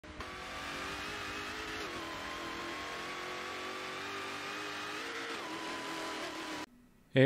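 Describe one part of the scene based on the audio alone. A racing car engine drones steadily, its pitch dropping now and then.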